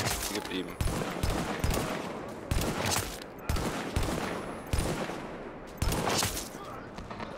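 A sniper rifle fires loud, sharp shots that ring out with an echo, several times in a row.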